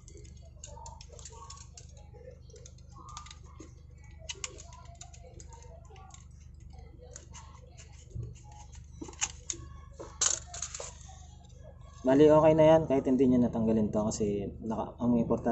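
Plastic parts click and rattle as hands work them loose.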